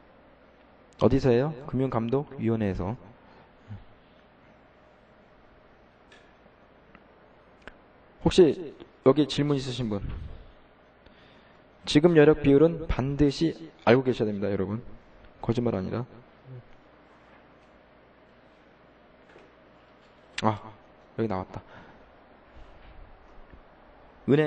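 A man speaks calmly into a microphone in short phrases, with pauses.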